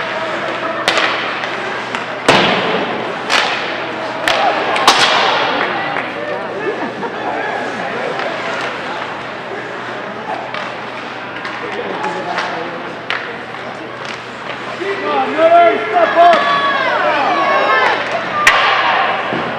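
Hockey sticks and pucks clack in an echoing ice rink.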